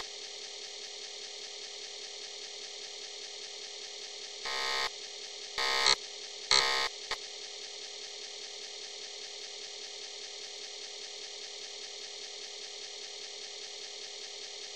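Electronic game music plays a steady, looping tune.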